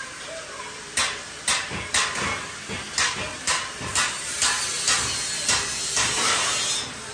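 A metalworker hammers on metal with sharp, ringing blows.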